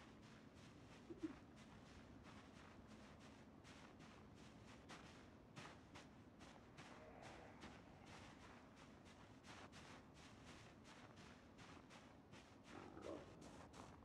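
Footsteps tread steadily and quickly on the ground.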